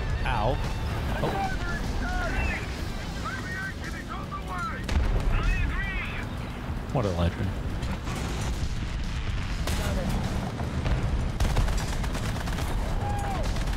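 Shells explode nearby.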